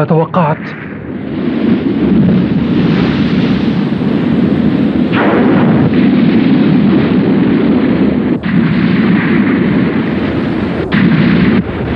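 Water surges and splashes as whales swim through it.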